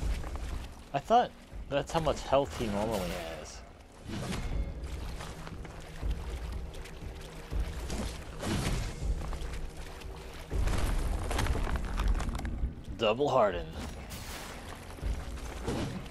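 Swords clash and swish in a fight.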